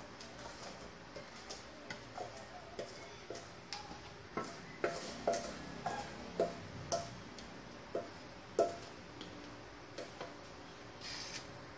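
A spatula scrapes and taps against a metal bowl.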